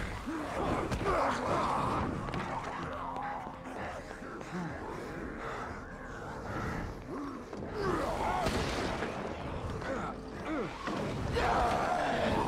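A monstrous creature snarls and growls up close.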